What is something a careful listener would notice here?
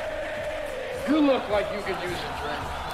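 A man shouts loudly and excitedly.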